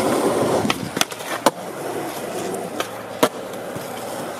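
A skateboard snaps and clacks sharply on the ground.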